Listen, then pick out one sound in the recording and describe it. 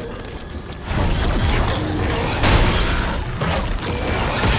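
A sudden violent struggle bursts out loudly.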